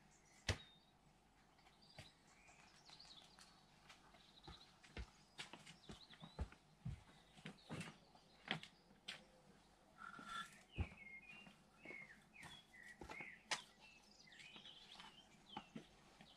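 Footsteps tread on grass and paving close by.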